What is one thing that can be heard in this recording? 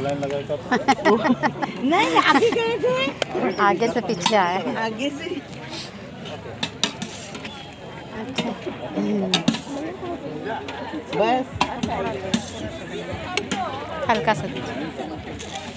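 Metal ladles clink against serving pots.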